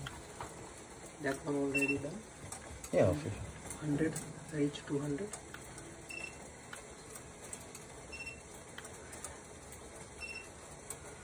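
Water simmers quietly in a pot, with faint ticks and pops.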